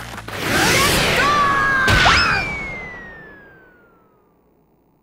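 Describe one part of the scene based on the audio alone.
A loud punch lands with a heavy whooshing blow that rings away.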